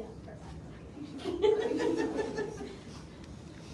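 A woman speaks up briefly and cheerfully nearby.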